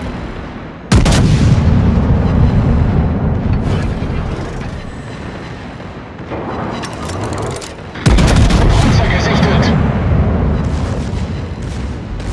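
Heavy naval guns fire in loud, deep booming salvos that rumble away.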